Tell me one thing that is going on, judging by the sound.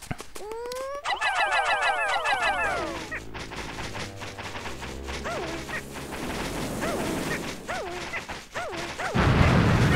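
Many small creatures chirp and squeak in high voices.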